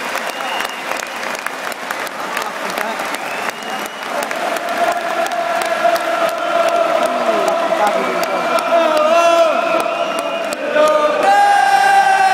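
A crowd of fans claps along in sharp beats.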